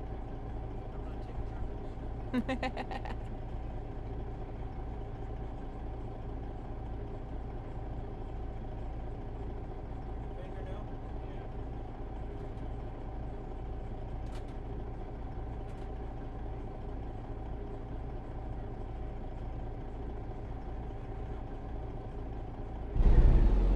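A truck engine idles with a steady, low, throbbing rumble.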